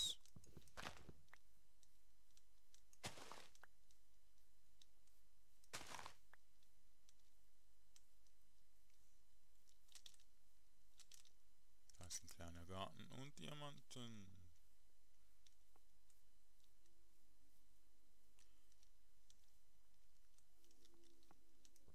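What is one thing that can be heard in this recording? Footsteps tread on grass.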